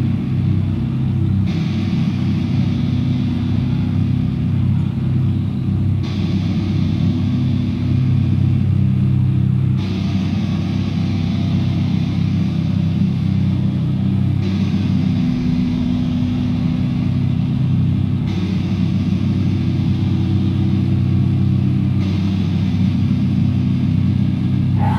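A drummer pounds drums and crashes cymbals.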